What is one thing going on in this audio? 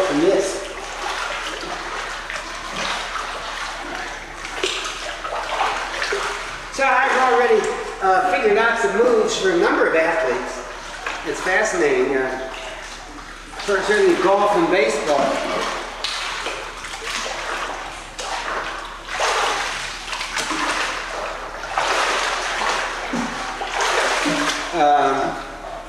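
Water splashes and sloshes as a man wades and swims in an echoing pool.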